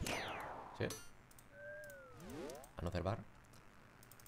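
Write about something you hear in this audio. Short game sound effects of magic spells chime and thud.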